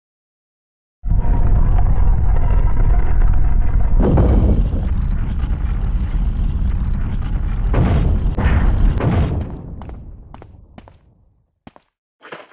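A heavy lift rumbles loudly as it descends, then fades away.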